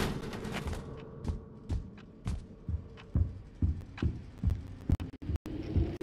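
Footsteps thud slowly on a wooden floor indoors.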